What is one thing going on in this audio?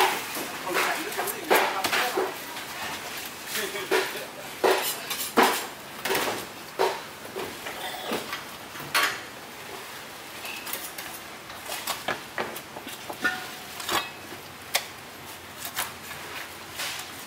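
A knife slices and scrapes through raw meat.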